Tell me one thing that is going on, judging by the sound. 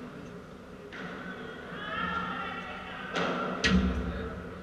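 A man calls out now and then across the court.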